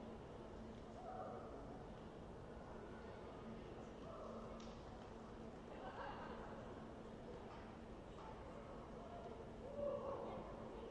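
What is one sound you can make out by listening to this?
Players call out to each other in a large echoing hall.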